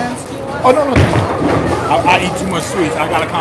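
A bowling ball thuds onto a lane and rolls away with a low rumble.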